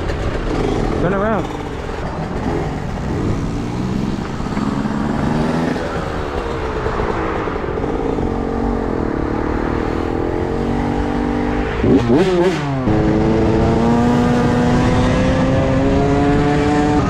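A motorcycle engine hums and revs, rising and falling in pitch.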